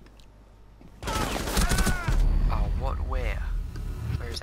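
Gunshots crack in a quick burst.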